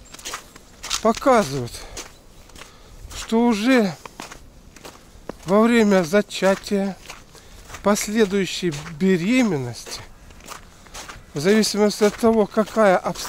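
An older man talks calmly close to the microphone, in short bursts with pauses.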